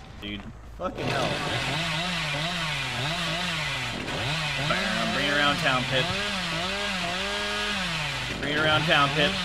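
A chainsaw revs up and down.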